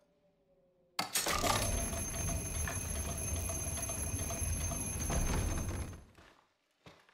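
A heavy mechanism grinds and rumbles loudly.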